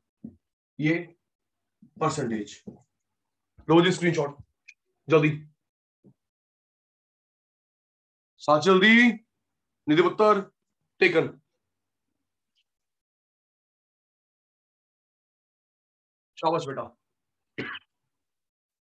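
A man speaks calmly and clearly, close by, in short phrases with pauses.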